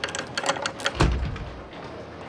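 A heavy metal gate stops with a loud bang.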